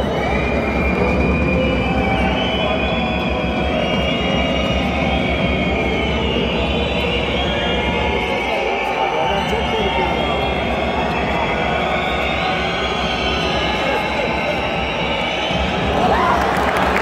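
A large crowd sings and chants together in an echoing arena.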